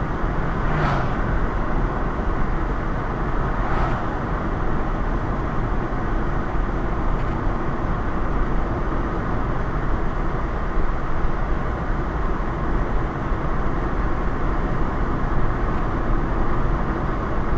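Tyres roar steadily on a road as a car drives along at speed.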